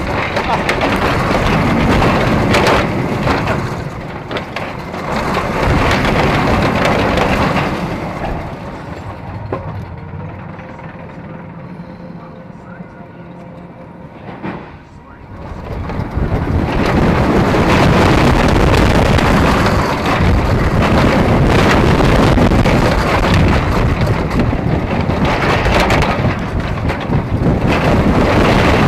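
A roller coaster rumbles and rattles along its track.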